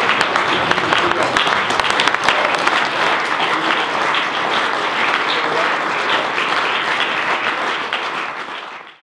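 A crowd applauds loudly in a room, fading away at the end.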